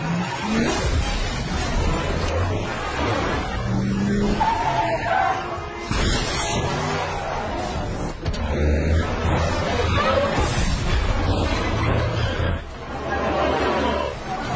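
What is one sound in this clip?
A heavy truck engine roars as it speeds past.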